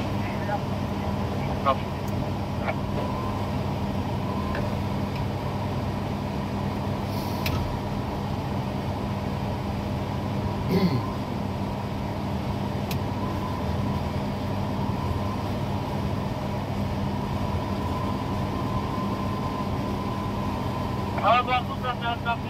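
A crane's motor hums steadily while lifting a load.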